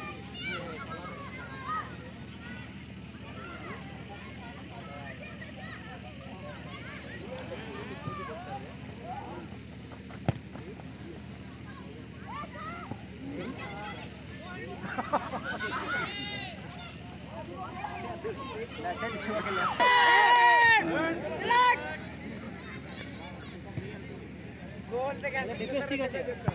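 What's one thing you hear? A crowd of spectators cheers and shouts from far off in the open air.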